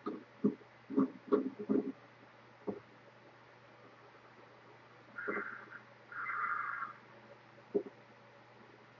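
A young man talks quietly into a microphone, close by.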